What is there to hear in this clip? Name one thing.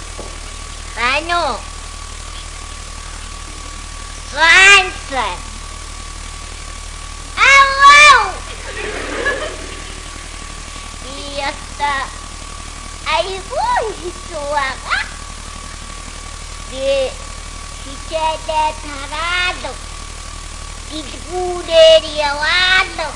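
A woman speaks expressively into a microphone, with pauses.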